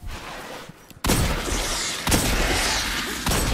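Pistol shots ring out in sharp, loud bursts.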